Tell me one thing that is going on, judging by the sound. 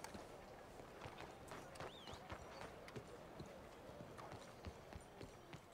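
Boots run quickly on stone.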